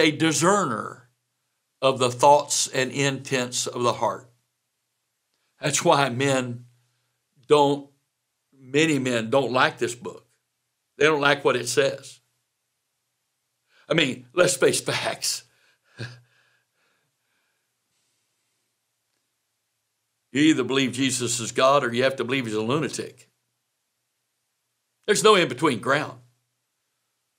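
An elderly man speaks calmly and clearly into a microphone, pausing often.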